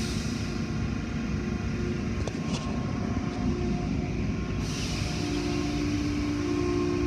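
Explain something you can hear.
Car wash machinery rumbles and whirs steadily.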